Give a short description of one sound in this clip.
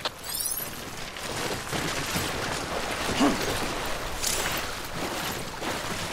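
Feet splash through shallow running water.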